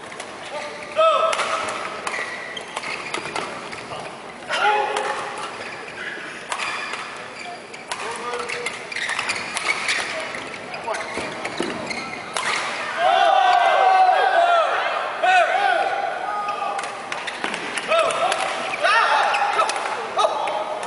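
Shoes squeak sharply on a court floor.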